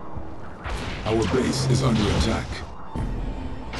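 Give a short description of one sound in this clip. An explosion bursts with a boom.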